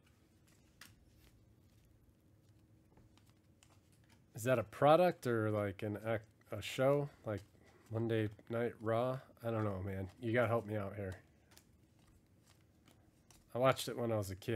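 Trading cards slide softly against each other.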